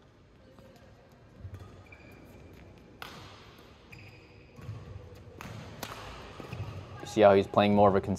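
A badminton racket hits a shuttlecock with sharp pops.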